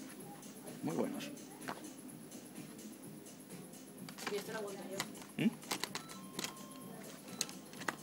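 Plastic packaging crinkles as a hand grabs it.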